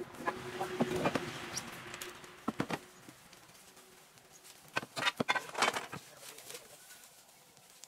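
Bricks clunk as they drop into a metal wheelbarrow.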